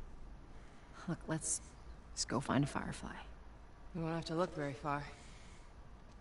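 A woman speaks calmly and quietly.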